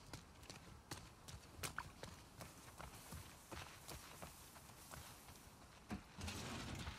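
Footsteps crunch on gravel and grass.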